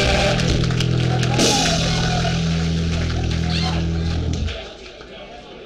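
A live rock band plays loudly.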